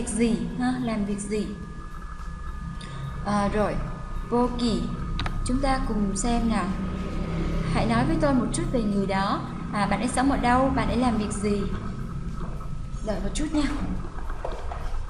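A young woman speaks calmly and slowly close to a microphone.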